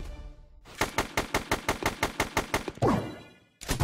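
A video game gun fires rapid shots.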